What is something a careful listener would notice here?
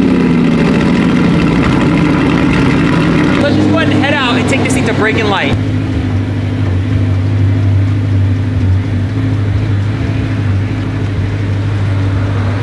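A sports car engine idles with a deep, throaty rumble.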